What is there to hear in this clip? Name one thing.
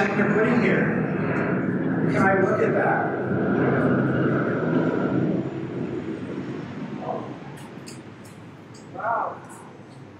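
A man speaks with animation to an audience in a room with some echo.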